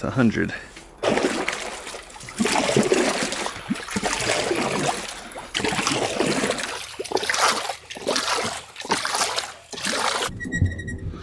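Water splashes and swirls as a paddle stirs it.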